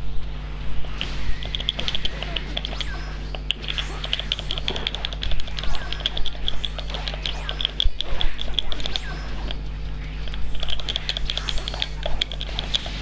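Punches and energy blasts hit hard in rapid bursts.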